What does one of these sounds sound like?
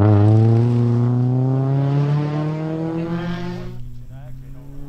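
A racing car engine roars past close by and fades away.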